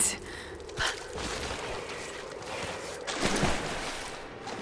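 A body scrapes along rough ground while crawling.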